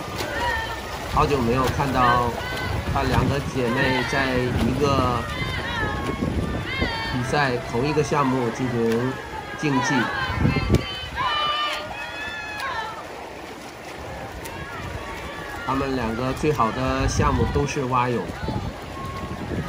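A crowd of spectators cheers and shouts encouragement outdoors.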